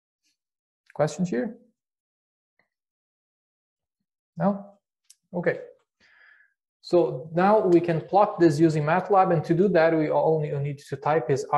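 A man speaks calmly into a close microphone, in short bursts and then steadily.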